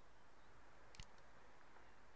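A menu selection clicks softly.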